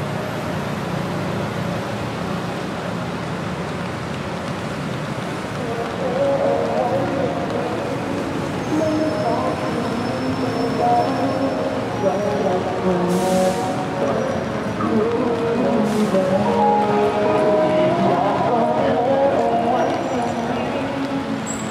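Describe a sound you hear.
Rain patters steadily on wet pavement outdoors.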